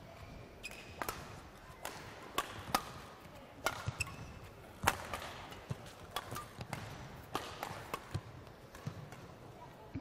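A shuttlecock is struck back and forth with sharp smacks of rackets.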